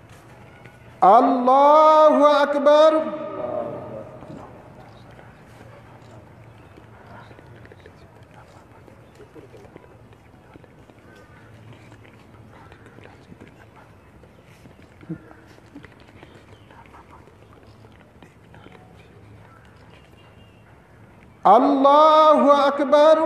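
A man chants a prayer loudly through a loudspeaker outdoors.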